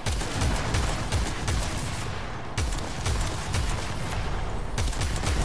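Heavy gunfire booms in rapid bursts.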